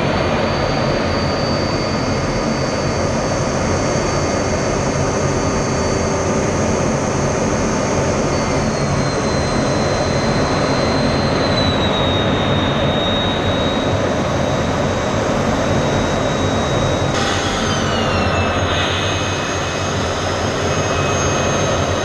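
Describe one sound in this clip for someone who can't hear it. A fighter jet's engine roars and whines, heard from inside the cockpit.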